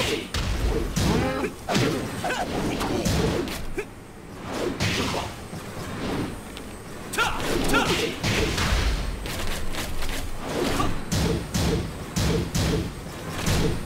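Heavy punches and kicks land with sharp thuds and cracks.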